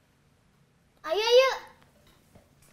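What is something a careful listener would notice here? A girl laughs close by.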